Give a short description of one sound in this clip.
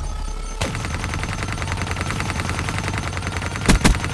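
An automatic gun fires in rapid bursts.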